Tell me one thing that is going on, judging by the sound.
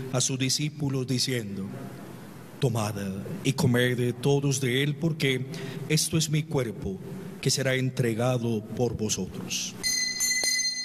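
A man speaks calmly and solemnly into a microphone.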